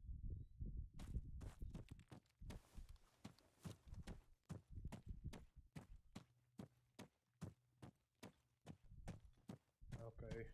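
Footsteps crunch quickly over dry, grassy ground.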